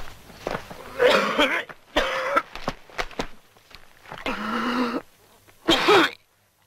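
A man sobs and wails loudly close by.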